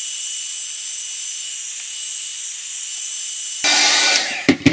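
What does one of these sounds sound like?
A heat gun blows with a steady, high-pitched whirring hiss, then switches off.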